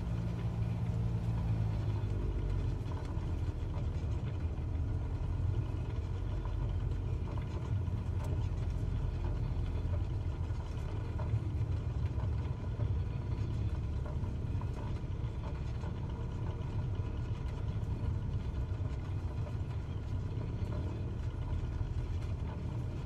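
Plane wheels rumble over a bumpy grass strip.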